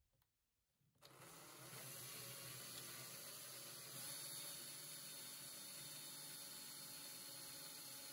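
A cordless drill whirs steadily into metal.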